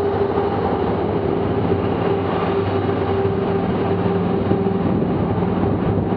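A car passes by.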